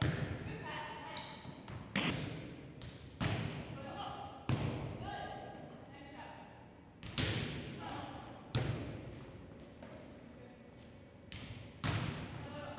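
A volleyball is hit back and forth with sharp smacks echoing in a large hall.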